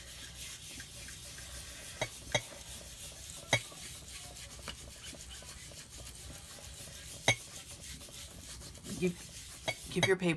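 A small ink pad taps and dabs lightly on paper.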